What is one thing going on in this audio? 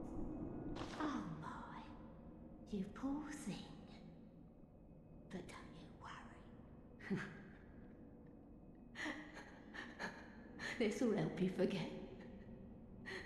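A woman speaks softly and gently, close by.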